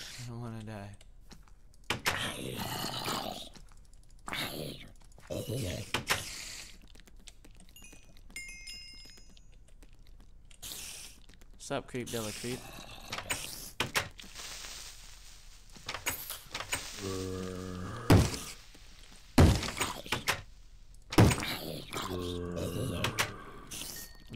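A wooden door creaks open and bangs shut several times.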